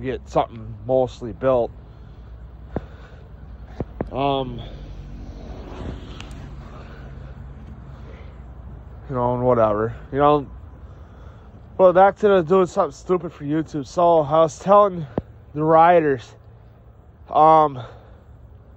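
A young man talks close by in short bursts, with pauses.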